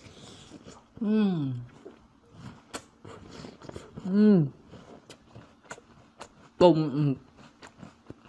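A young man hums with pleasure with his mouth full, close to a microphone.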